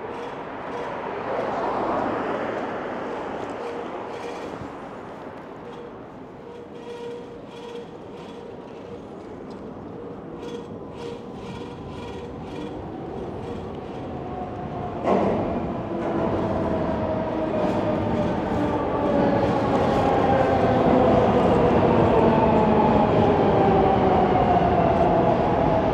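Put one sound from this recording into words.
Tyres of an electric bike hum on asphalt.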